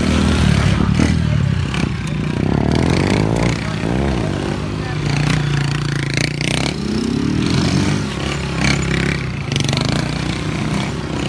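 A motorcycle engine revs loudly up and down, close by.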